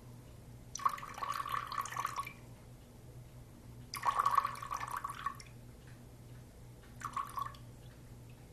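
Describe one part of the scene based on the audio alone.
Water pours from a jug into a glass bowl.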